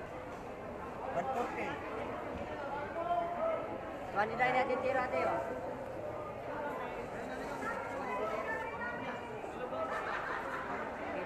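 Many voices chatter in a busy, echoing crowd.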